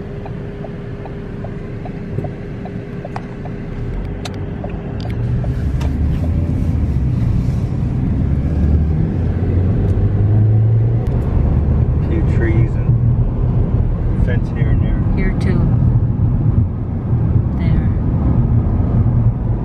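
A car rumbles along a road, heard from inside, growing louder as it picks up speed.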